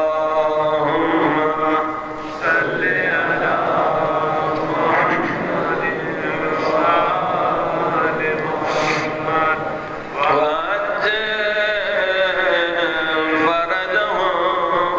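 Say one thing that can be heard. A middle-aged man speaks with animation into a microphone, his voice ringing through loudspeakers.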